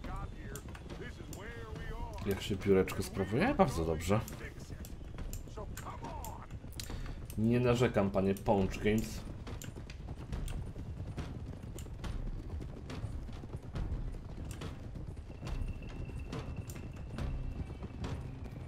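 Horses' hooves clop on a dirt path.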